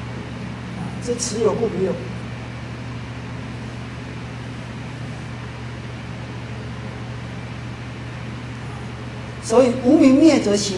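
A man speaks calmly, heard through a microphone.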